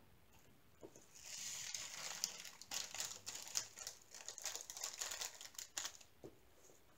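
Tiny beads rattle and pour out of a plastic bag.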